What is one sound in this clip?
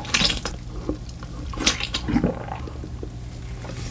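A person bites and chews sausage with wet, squishy sounds close to a microphone.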